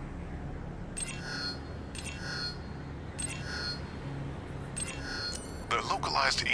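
Electronic menu chimes sound in short bursts as options change.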